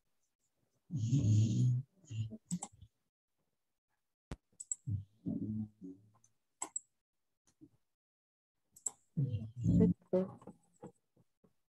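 A young boy speaks quietly over an online call.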